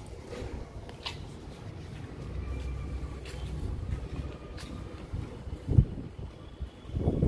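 Hooves tap and scuff on hard ground close by.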